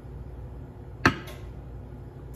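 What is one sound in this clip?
A glass is set down on a wooden board with a knock.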